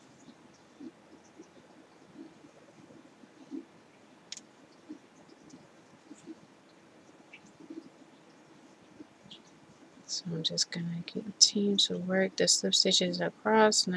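A crochet hook softly scrapes and clicks as yarn is pulled through loops.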